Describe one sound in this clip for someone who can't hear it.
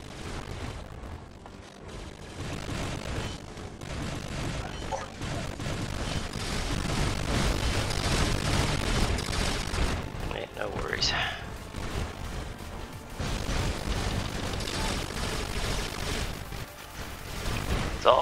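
A giant robot's heavy footsteps thud.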